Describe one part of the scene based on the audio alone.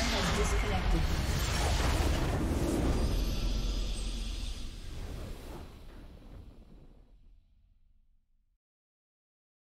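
A triumphant game fanfare swells and then fades away to silence.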